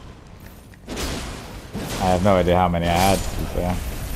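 A sword swings and clangs in a fight.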